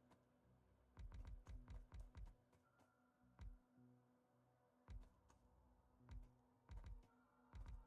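Soft clicks sound as buildings are placed in a game.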